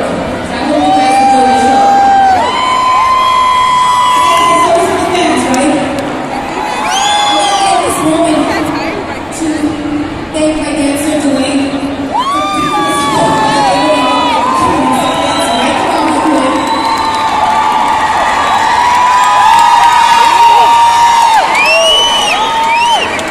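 A woman sings into a microphone through loud speakers, heard from within a crowd.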